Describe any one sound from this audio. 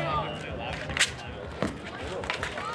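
Hockey sticks clack against a ball on asphalt.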